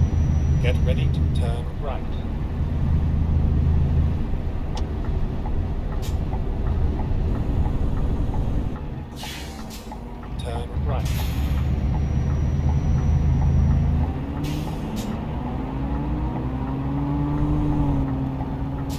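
A truck engine rumbles steadily, rising and falling in pitch.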